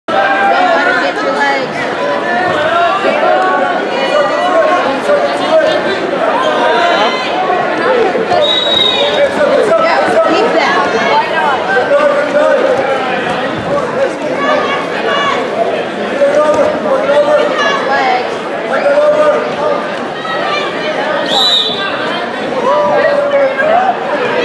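Spectators chatter and shout in a large echoing hall.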